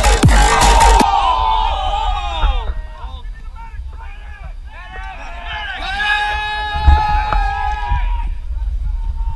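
A crowd of young men and women shouts and cheers loudly outdoors.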